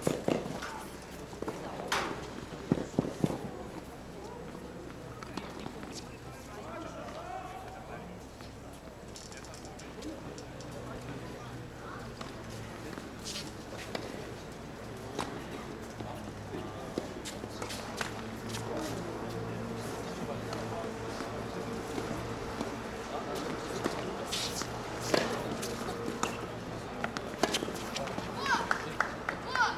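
Tennis balls are struck with rackets in sharp pops.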